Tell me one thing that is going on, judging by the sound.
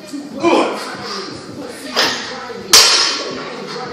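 A heavy barbell weight thuds onto the floor.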